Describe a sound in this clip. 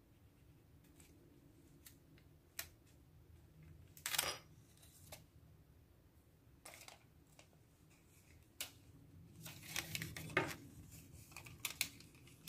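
Sticker sheets rustle and crinkle as they are handled.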